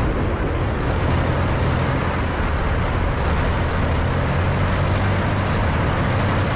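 An armoured vehicle's engine rumbles steadily as it drives along a road.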